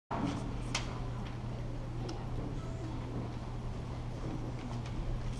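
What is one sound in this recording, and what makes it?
A woman speaks into a microphone.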